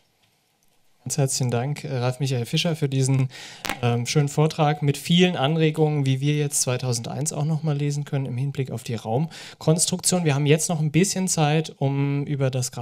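A man speaks steadily through a microphone in a large hall.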